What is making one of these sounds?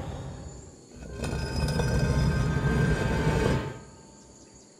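Stone grinds and rumbles.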